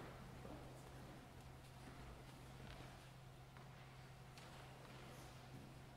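Footsteps walk slowly across a carpeted floor.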